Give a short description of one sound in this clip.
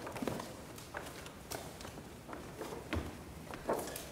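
Children's footsteps patter across a stage.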